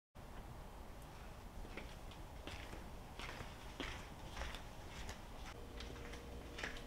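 Footsteps tap on a hard floor at an even pace.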